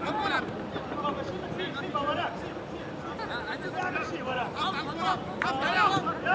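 Young men shout and call to each other from a distance across an open field.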